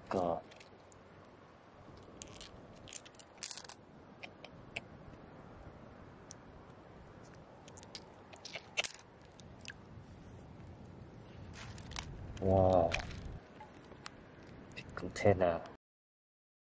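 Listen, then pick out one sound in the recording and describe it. Glass pebbles clink against each other.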